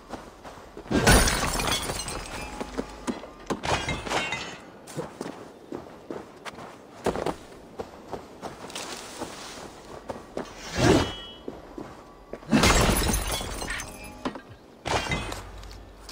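An axe strikes with heavy thuds and clashes.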